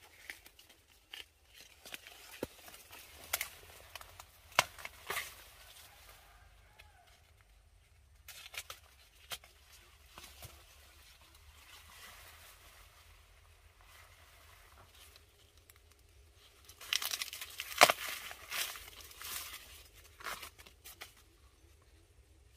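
Corn husks rustle and crackle as hands peel an ear of corn.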